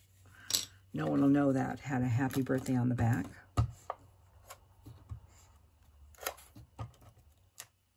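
A tape dispenser clicks and rolls over paper.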